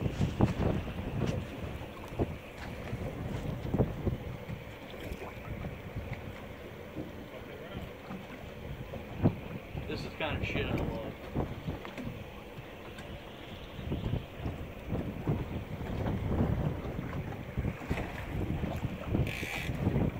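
Wind rumbles across the open sea.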